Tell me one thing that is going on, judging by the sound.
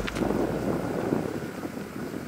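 Wind blows across an open space.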